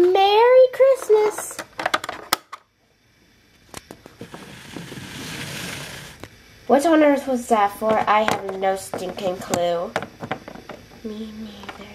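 Small plastic toys tap and clatter on a hard surface.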